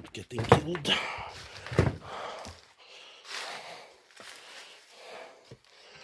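Footsteps crunch over loose debris on a wooden floor.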